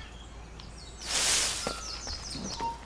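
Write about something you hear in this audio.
Leaves rustle loudly as someone pushes out through a bush.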